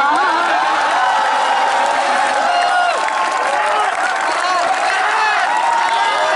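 A crowd claps along.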